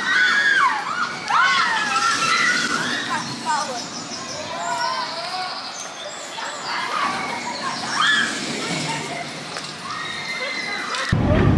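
Riders scream in the distance.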